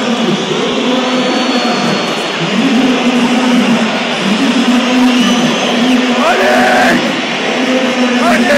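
A large stadium crowd chants loudly and steadily in unison, echoing through the open stands.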